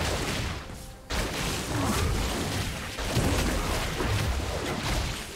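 Video game spell effects crackle, zap and thud in a fast fight.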